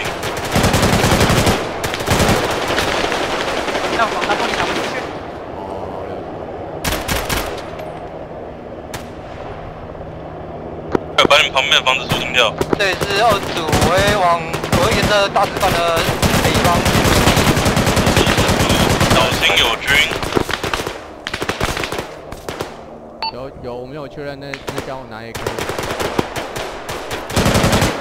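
A heavy machine gun fires rapid bursts close by.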